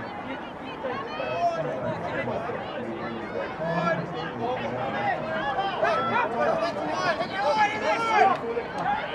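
Young men call out to each other across an open field.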